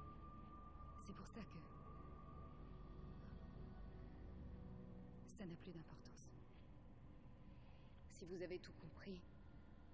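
A young woman speaks quietly and tensely, close by.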